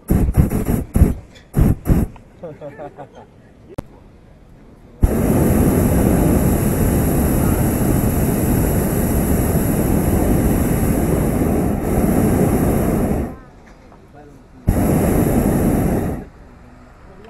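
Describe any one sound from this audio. A gas burner roars loudly in long bursts.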